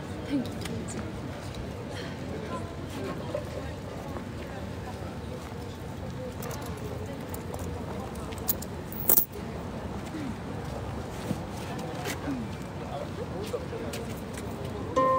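A harp is plucked softly outdoors.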